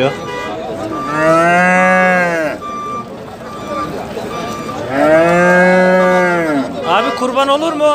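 A calf bellows loudly.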